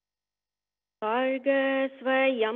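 A woman chants in long, steady held notes over an online call.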